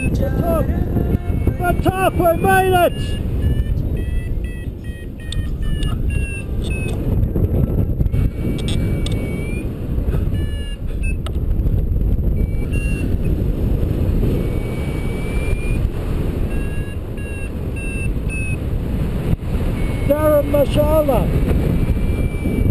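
Wind rushes loudly past in flight.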